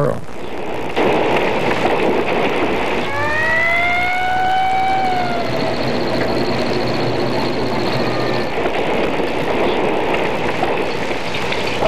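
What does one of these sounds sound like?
A large fire roars.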